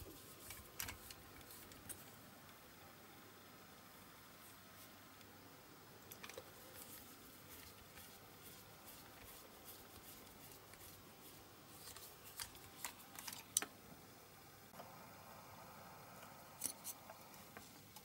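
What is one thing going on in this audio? Small plastic parts click and tap as they are handled.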